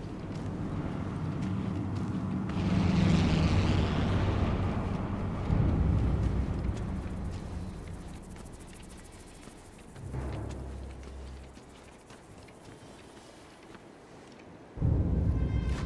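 Footsteps crunch softly on a gravel path.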